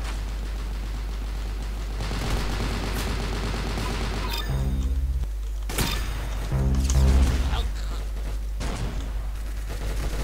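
Gunshots crack from a video game rifle.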